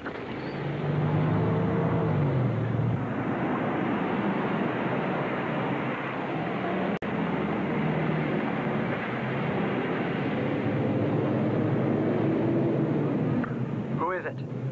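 A pickup truck engine roars as it drives past.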